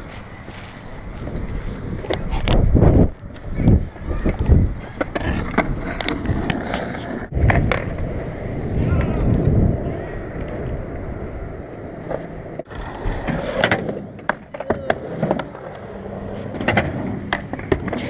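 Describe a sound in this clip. A skateboard clacks and knocks against concrete.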